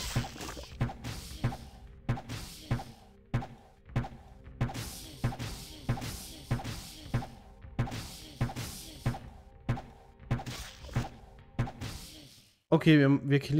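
Blows land over and over in a fight, with sharp thuds and clashes.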